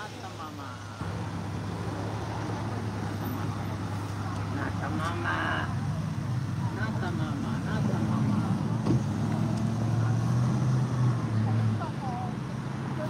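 A car engine hums as the car drives slowly past close by.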